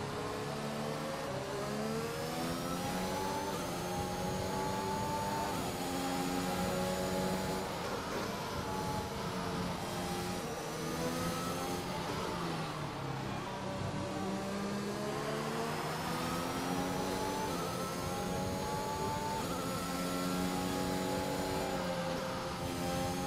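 A racing car engine whines, rising in pitch as it speeds up and dropping as it slows and shifts gear.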